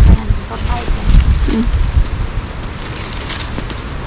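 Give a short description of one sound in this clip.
Dry leaves rustle close by.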